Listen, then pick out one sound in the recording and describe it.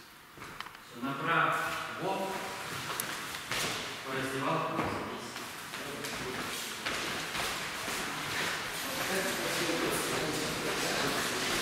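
A man speaks loudly in a large echoing hall.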